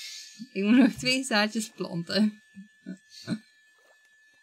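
A young woman talks and laughs with animation close to a microphone.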